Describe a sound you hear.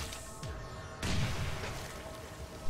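A bomb bursts with a wet splash.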